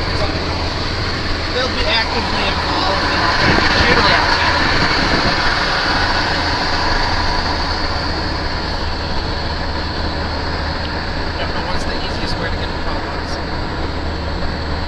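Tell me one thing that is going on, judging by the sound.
Tyres roll steadily over asphalt with a constant rushing noise.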